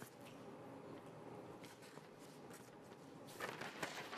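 Paper rustles in a man's hands.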